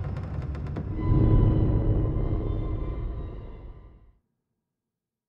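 A cart crashes with a loud, deep rumble that fades away.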